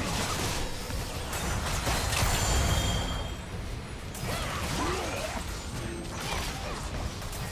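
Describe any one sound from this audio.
Spell blasts and impacts crackle and whoosh in a game battle.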